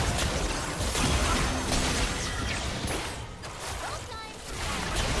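Spell effects crackle and burst during a video game battle.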